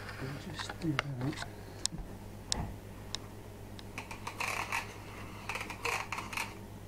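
A small paper mechanism clicks and creaks as it moves.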